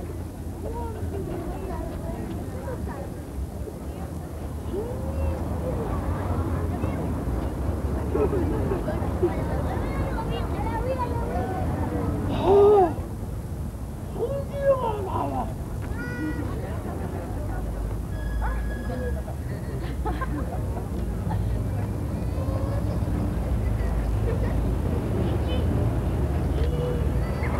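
A man talks and calls out with animation outdoors.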